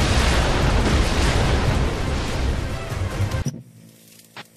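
A huge explosion roars.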